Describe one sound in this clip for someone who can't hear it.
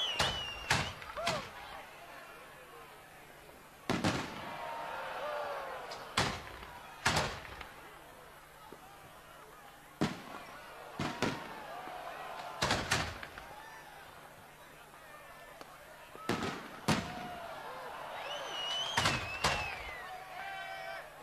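Fireworks crackle and fizz.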